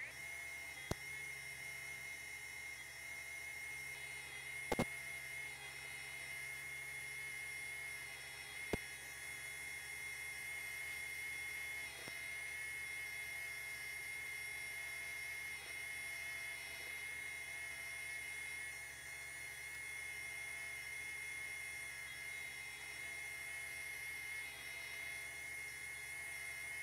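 A sewing machine runs with a steady, rapid whirring hum.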